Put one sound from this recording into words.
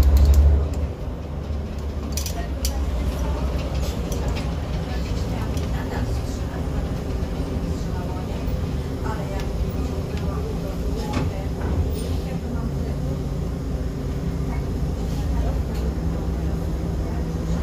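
The diesel engine of a city bus drones, heard from inside the bus.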